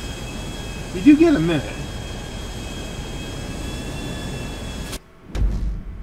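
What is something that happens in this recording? An aircraft engine drones steadily.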